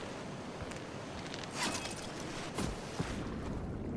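A waterfall rushes.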